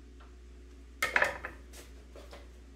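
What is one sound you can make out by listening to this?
A metal utensil clacks onto a wooden cutting board.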